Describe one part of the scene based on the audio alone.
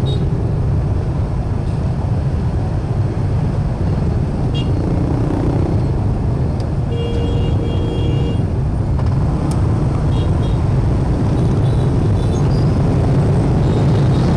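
Motorbike engines rumble steadily all around in dense traffic.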